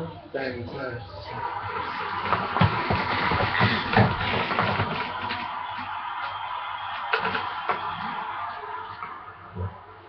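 A crowd cheers and roars loudly through a television speaker.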